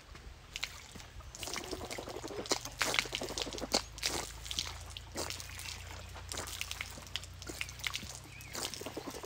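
Water runs from a tap and splashes onto the ground.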